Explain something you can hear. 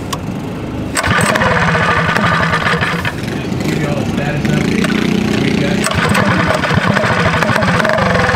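A small engine sputters to life and runs roughly.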